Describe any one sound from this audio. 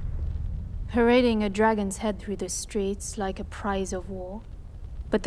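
A woman speaks firmly and with animation.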